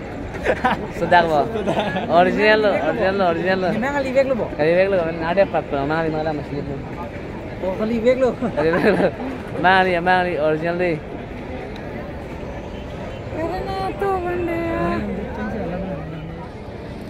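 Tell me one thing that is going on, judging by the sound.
A young man talks excitedly close to the microphone.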